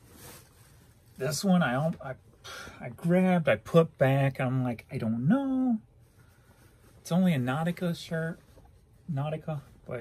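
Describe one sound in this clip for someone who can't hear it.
Fabric rustles as a jacket is handled.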